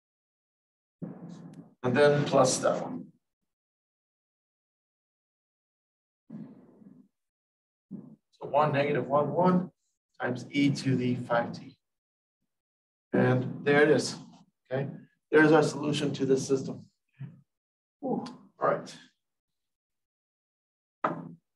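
A man speaks calmly and clearly, explaining at a steady pace, with pauses.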